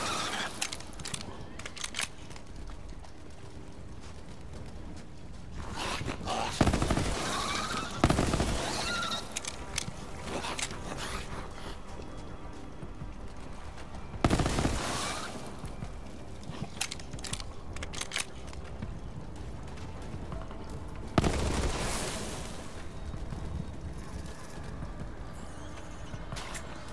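A gun fires rapid shots with sharp bursts and loud booms.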